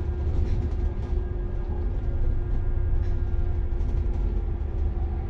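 A bus engine rumbles steadily while driving along a street.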